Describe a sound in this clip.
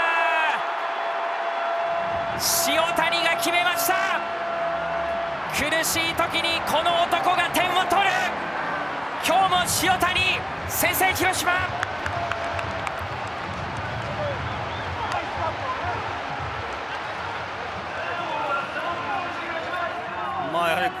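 A stadium crowd cheers and roars.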